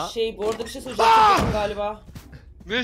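A young man shouts loudly over a microphone.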